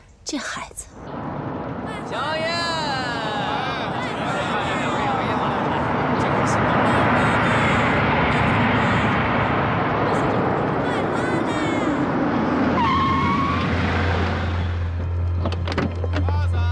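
A crowd murmurs and bustles outdoors.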